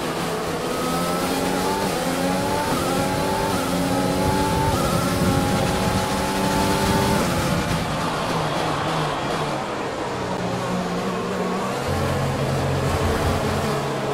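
A racing car engine screams, rising through the gears, then drops in pitch while braking into a corner.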